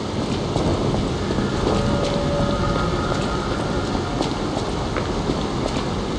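Footsteps thud on wet cobblestones.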